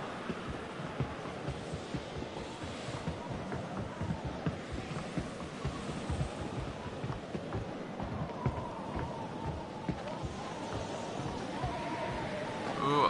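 Footsteps thud steadily on wooden planks.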